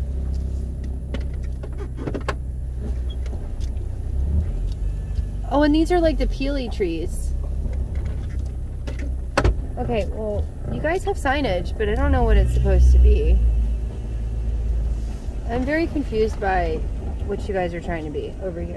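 A car engine rumbles low and steady while driving slowly.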